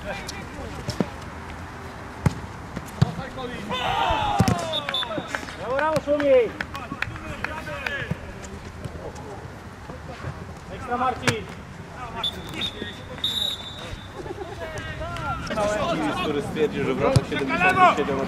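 A football thuds sharply as it is kicked.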